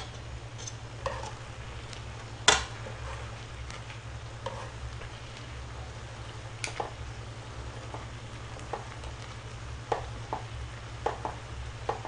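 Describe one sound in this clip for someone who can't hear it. Chopsticks and a ladle clink against a metal pot.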